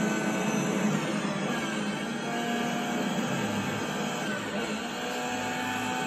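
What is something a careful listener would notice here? A racing car engine winds down as the car slows.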